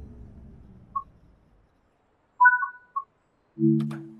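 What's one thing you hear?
Beeps sound from a train cab.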